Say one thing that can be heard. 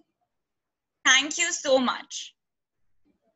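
A young woman speaks cheerfully over an online call.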